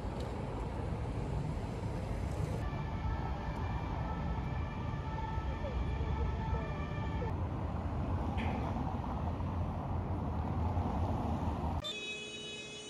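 Car traffic rumbles steadily past close by, outdoors.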